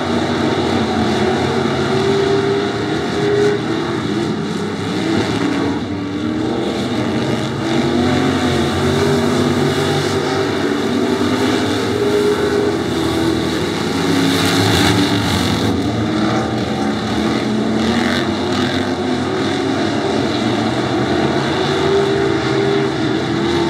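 Race car engines roar loudly as the cars speed around a dirt track.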